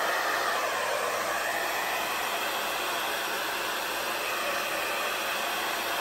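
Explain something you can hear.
A hot air blower whirs and hisses steadily, close by.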